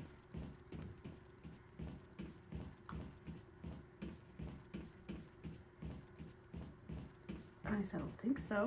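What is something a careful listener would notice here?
Footsteps run at a quick, steady pace.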